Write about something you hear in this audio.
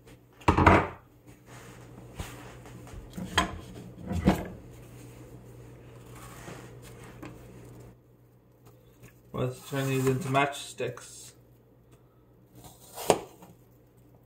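A knife knocks against a cutting board a few times.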